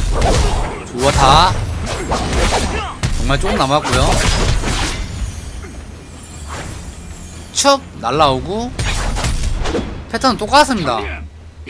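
A young person talks with animation close to a microphone.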